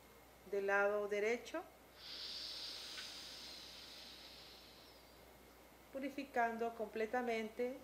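A woman speaks calmly in a drawn-out, guiding voice.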